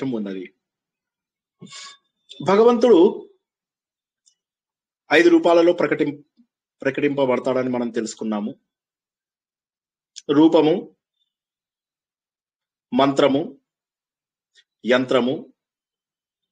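A middle-aged man speaks calmly in short phrases with pauses, heard through an online call.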